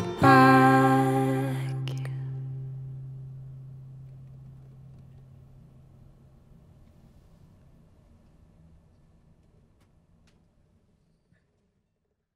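A guitar chord is strummed and slowly rings out and fades away.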